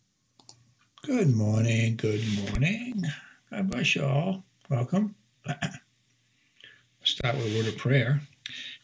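An elderly man speaks calmly and with animation into a close microphone.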